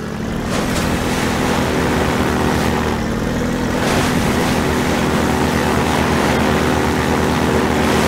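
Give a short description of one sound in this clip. Water splashes under the wheels of a small vehicle.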